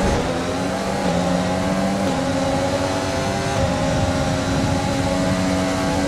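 A racing car engine whines loudly, rising in pitch as it shifts up through the gears.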